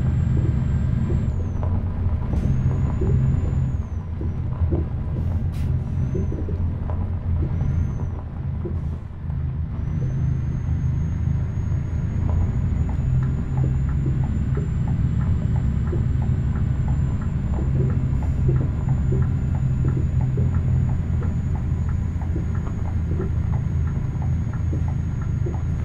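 Tyres crunch over snow.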